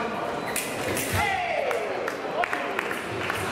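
Fencing blades clash and click together.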